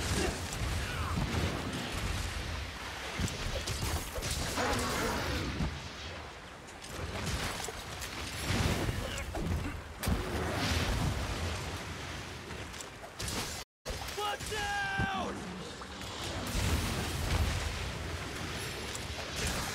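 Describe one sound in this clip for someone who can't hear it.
Blades strike with sharp swishes and clangs.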